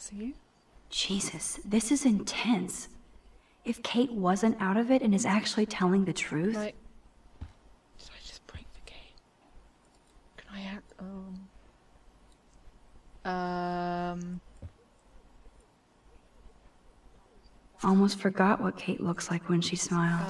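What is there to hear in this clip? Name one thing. A young woman speaks quietly to herself, close by.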